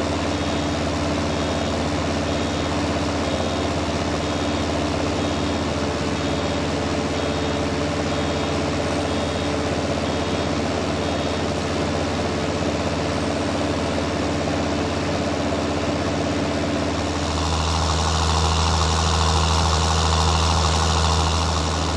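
A tractor engine runs with a steady low drone.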